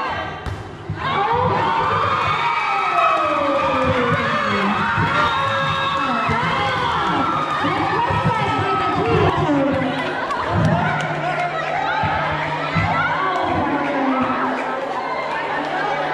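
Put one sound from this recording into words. A crowd of women cheers and shouts loudly in an echoing hall.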